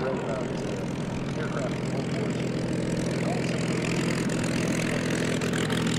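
A propeller plane's piston engine drones loudly and steadily close by.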